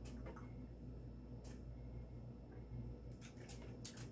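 A man gulps water.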